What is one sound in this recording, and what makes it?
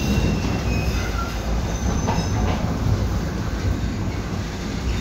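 A tram rumbles and rattles steadily along its track.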